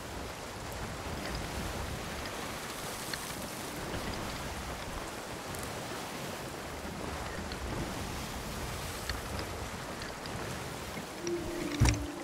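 Heavy rain pours down steadily in a roaring storm.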